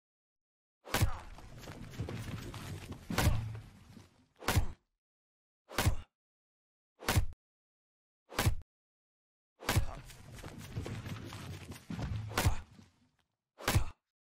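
A tree cracks and crashes down through branches.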